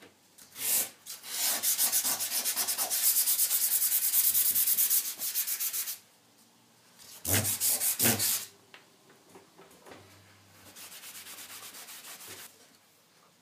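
Steel wool scrubs rapidly back and forth across a metal board.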